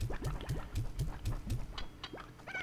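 A cartoonish vacuum sound effect whooshes as objects are sucked in.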